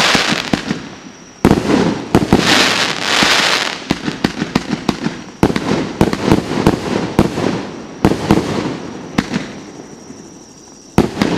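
Fireworks burst with loud booming bangs outdoors.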